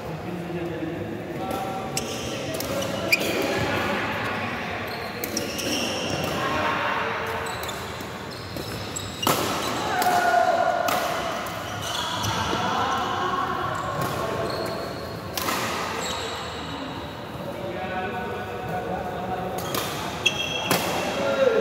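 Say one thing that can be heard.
Several men chatter in a large echoing hall.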